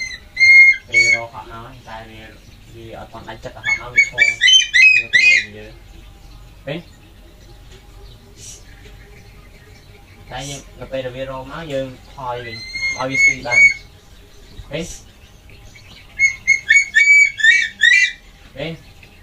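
A bird of prey gives loud, shrill, repeated cries close by.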